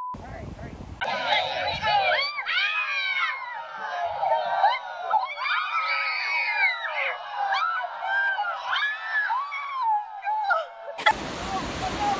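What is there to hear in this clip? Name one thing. A crowd of people shouts and cheers outdoors.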